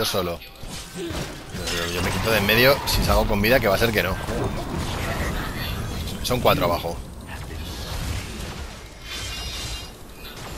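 Game spells blast and weapons clash in a fight.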